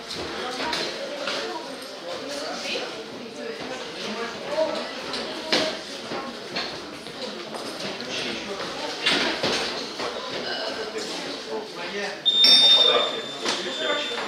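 Boxers' punches thud on gloves and bodies.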